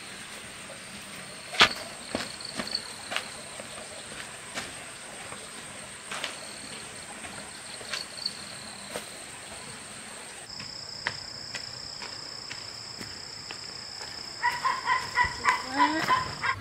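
Footsteps crunch on the ground outdoors.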